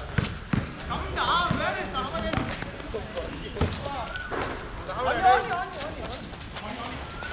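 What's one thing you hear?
Young men shout and call out to each other during play.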